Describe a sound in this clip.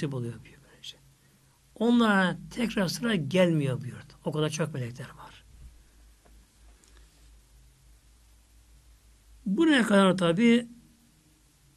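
An elderly man speaks emphatically into a microphone, with long pauses.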